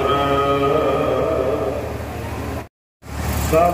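A middle-aged man speaks steadily into a microphone, heard through a loudspeaker.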